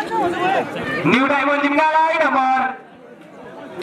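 A man shouts loudly close by.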